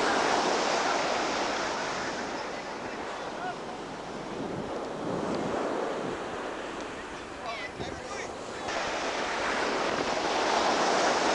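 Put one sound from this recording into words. Waves crash and wash onto a beach.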